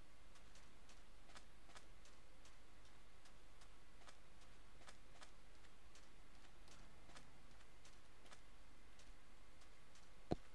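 Footsteps crunch softly on sand at a steady pace.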